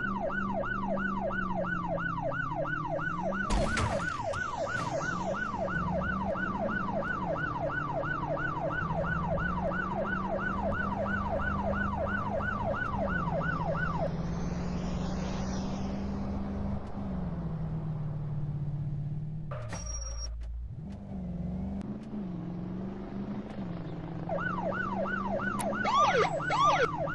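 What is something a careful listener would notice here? A police siren wails rapidly and steadily.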